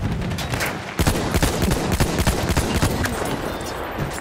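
Explosions boom heavily nearby.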